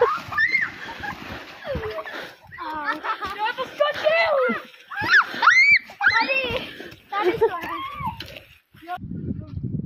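Children shriek and laugh excitedly close by.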